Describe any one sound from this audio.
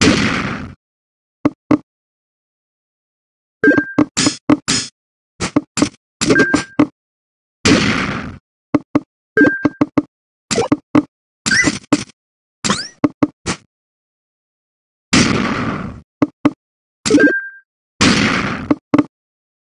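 Longer game sound effects ring out now and then.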